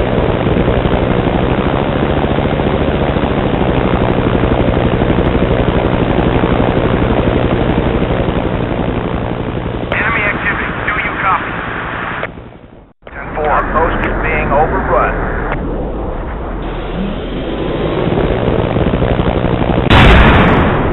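A helicopter's rotor whirs and thumps steadily nearby.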